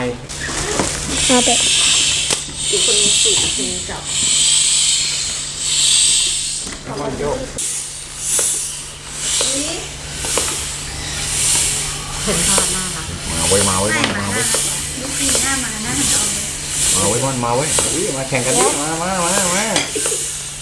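A hand pump hisses with quick, even strokes.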